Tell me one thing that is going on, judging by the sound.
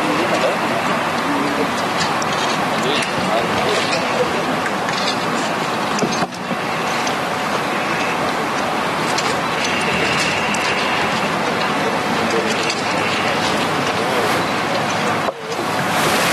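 A woman speaks into microphones.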